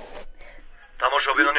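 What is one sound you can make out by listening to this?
A man reads out the news through a television speaker.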